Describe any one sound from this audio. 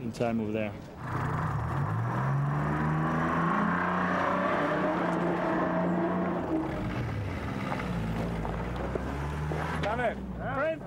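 A vehicle engine rumbles and revs nearby.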